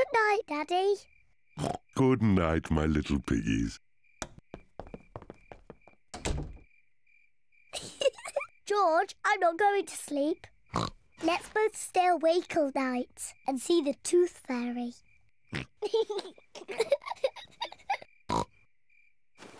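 A young girl talks cheerfully in a cartoon voice.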